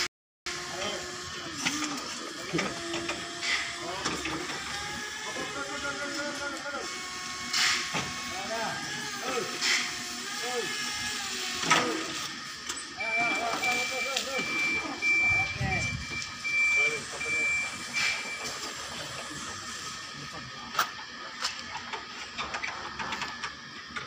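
A forklift engine runs steadily nearby.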